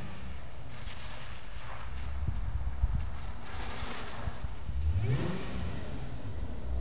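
A car engine revs as the car pulls away down a street.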